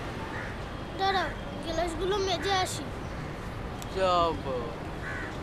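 A boy speaks calmly nearby.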